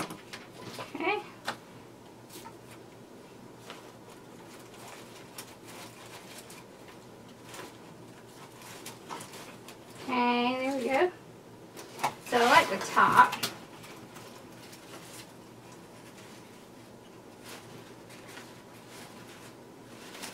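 Leaves and ribbon rustle as they are handled.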